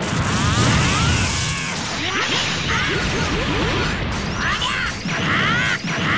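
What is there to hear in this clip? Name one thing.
An energy blast roars loudly.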